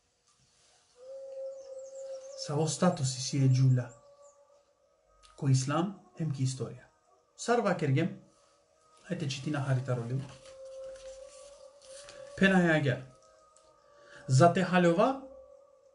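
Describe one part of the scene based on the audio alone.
A man talks calmly and close up.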